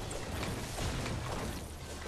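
An explosion bursts loudly.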